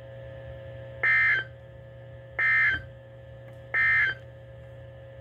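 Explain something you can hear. A weather radio gives short, sharp beeps.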